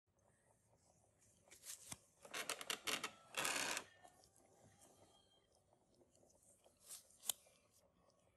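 A paper tissue rustles against gloved fingers.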